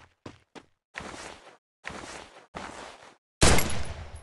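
A body scrapes and shuffles across gravelly ground.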